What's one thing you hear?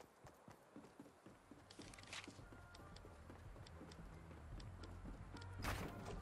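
Wooden planks clatter into place as a ramp is built.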